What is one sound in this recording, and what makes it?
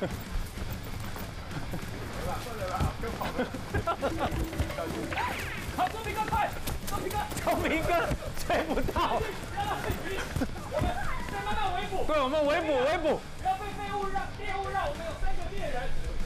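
Footsteps run on paving and dirt.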